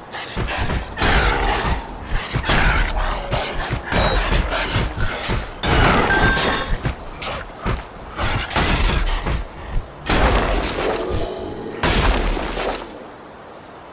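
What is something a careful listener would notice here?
Birds screech.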